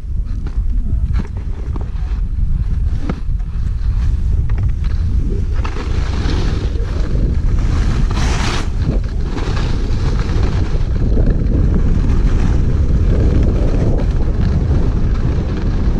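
Skis scrape and hiss over snow, growing louder with speed.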